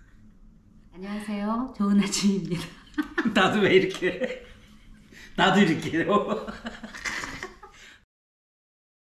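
A middle-aged man and woman laugh heartily nearby.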